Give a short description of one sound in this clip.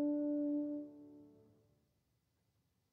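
A horn holds a long note that fades away in a large echoing hall.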